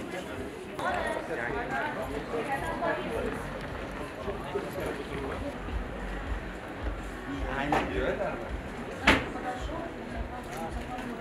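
Several men and women chatter nearby with animation.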